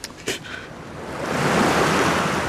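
Waves crash loudly on the shore.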